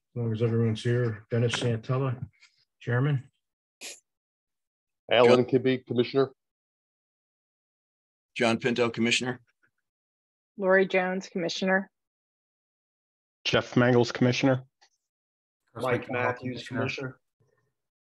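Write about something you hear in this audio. A man speaks calmly in bursts over an online call.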